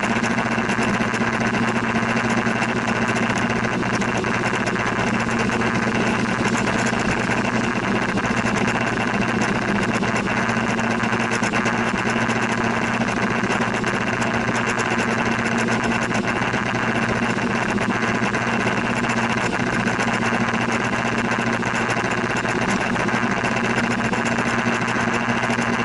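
Rain patters steadily on a windscreen.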